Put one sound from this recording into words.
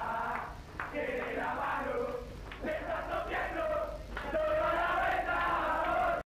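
Young men cheer and shout with excitement.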